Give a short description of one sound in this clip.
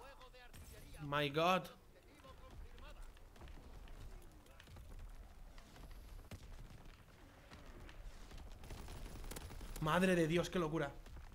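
A young man speaks with animation into a close microphone.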